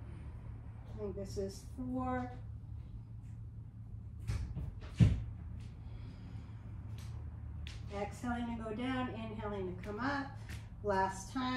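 A man speaks calmly and slowly nearby.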